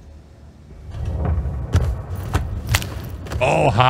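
Heavy blows thud during a short scuffle.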